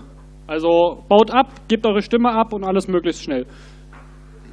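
A man speaks into a microphone over loudspeakers in a large hall.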